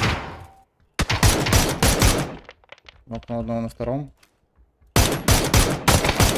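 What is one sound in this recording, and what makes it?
A rifle fires loud, quick bursts of shots.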